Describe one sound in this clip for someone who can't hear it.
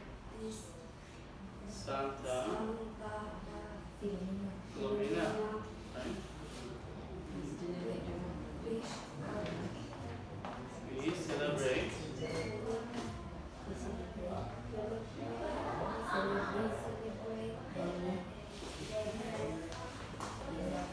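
A man speaks calmly to a small group.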